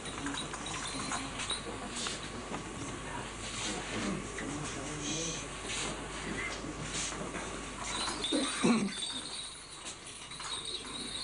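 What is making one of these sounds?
A crowd murmurs quietly in an echoing hall.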